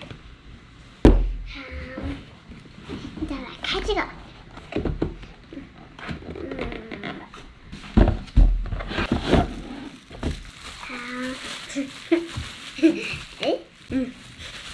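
Cardboard packaging rattles and knocks on a table.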